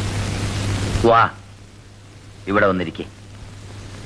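A man speaks briefly in short bursts, close by.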